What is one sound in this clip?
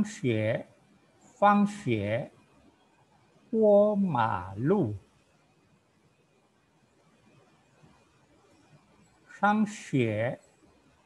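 An elderly man speaks calmly and slowly in short phrases over an online call.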